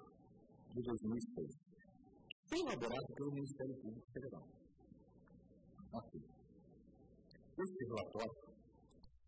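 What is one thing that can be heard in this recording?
A man speaks formally into a microphone, reading out in a steady voice.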